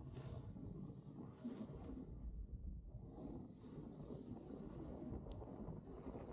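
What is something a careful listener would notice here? A snowboard scrapes and hisses over packed snow.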